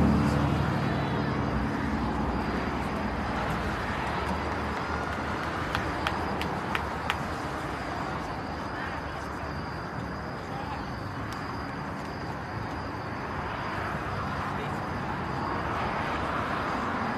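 A crowd of spectators murmurs and chatters nearby outdoors.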